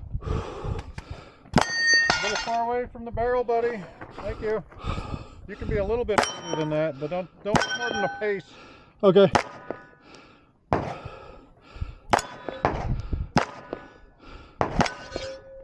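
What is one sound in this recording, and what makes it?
A handgun fires sharp shots outdoors.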